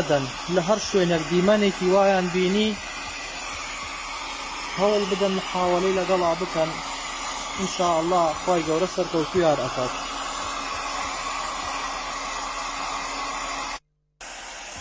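A hair dryer blows with a steady whirring hiss.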